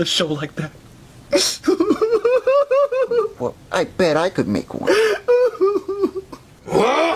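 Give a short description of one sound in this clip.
A man speaks in a high, squeaky character voice close by, with animation.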